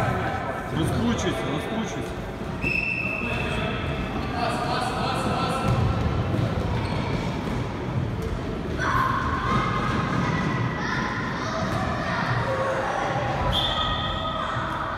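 Young children shout and call out in a large echoing hall.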